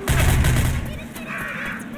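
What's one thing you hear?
A gun fires with a deep boom.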